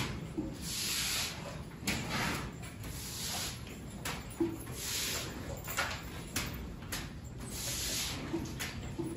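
Cow hooves shuffle and knock on a hard floor.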